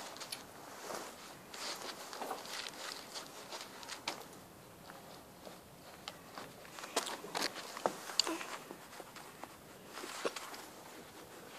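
Fingers rustle and tug at shoelaces close by.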